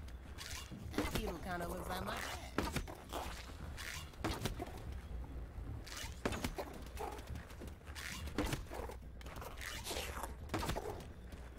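Weapon blows land with sharp thuds and swooshes.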